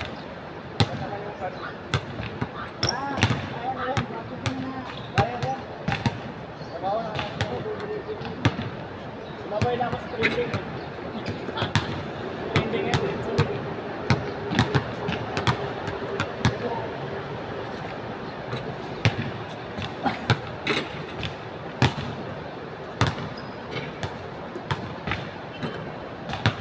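A basketball bounces on a hard outdoor court.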